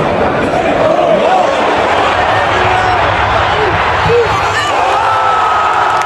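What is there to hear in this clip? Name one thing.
A huge stadium crowd roars loudly all around.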